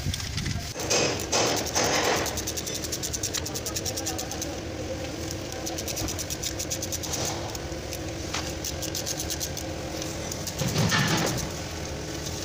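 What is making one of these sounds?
A ratchet wrench clicks rapidly as it turns bolts.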